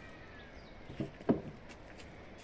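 Wooden boards knock together.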